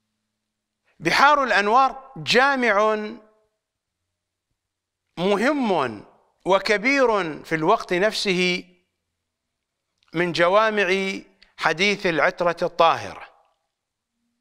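An elderly man speaks with animation into a microphone, pausing between phrases.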